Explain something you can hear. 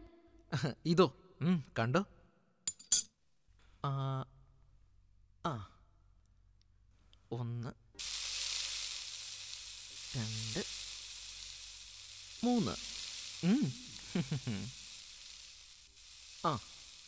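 A young man talks playfully.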